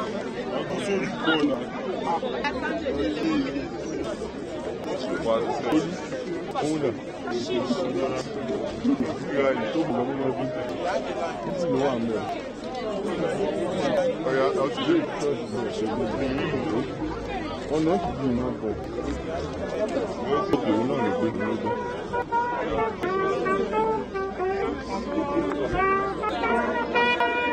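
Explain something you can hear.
A large crowd of men and women talks and murmurs outdoors.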